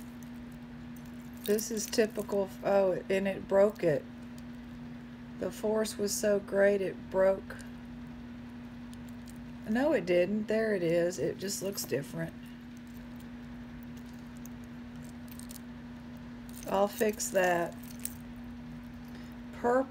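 Metal chain jewellery clinks and jingles softly as it is handled.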